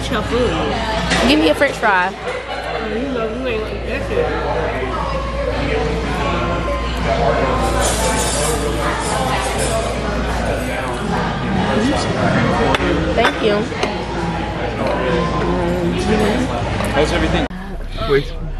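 People chatter in a busy, noisy room.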